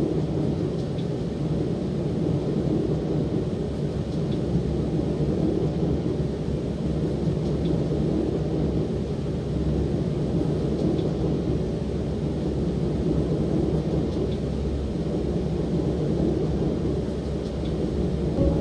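Train wheels click faintly over rail joints at regular intervals.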